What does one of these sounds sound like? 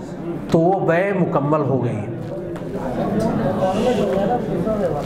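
A middle-aged man speaks steadily into a microphone, heard through a loudspeaker.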